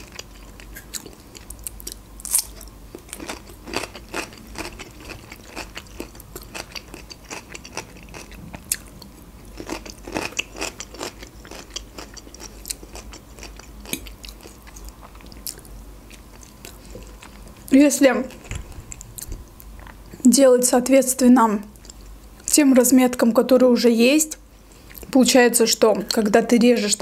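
A fork clicks against a plate.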